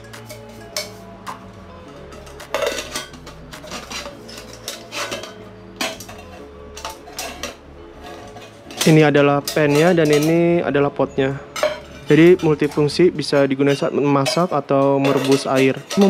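Metal pots clink and clank as they are handled.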